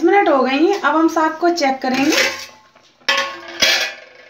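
A metal lid scrapes and clinks as it is lifted off a pot.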